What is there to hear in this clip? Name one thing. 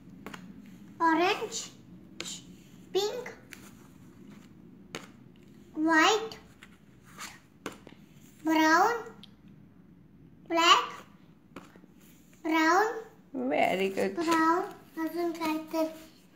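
A young child calls out single words loudly, close by.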